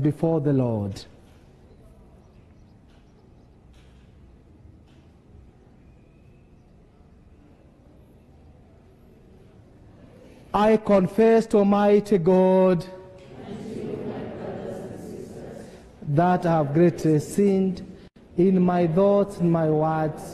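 A man sings a chant slowly through a microphone in a large echoing hall.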